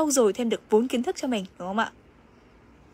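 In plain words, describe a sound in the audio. A young woman speaks with animation close to the microphone.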